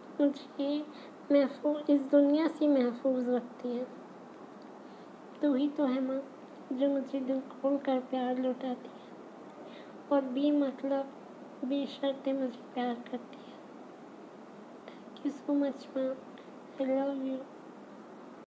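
A young woman speaks calmly and close up, in short phrases with pauses.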